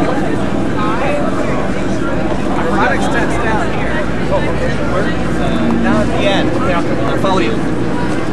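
A middle-aged man talks nearby.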